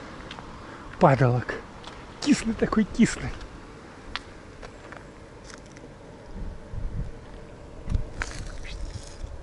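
Footsteps crunch on a leaf-strewn path.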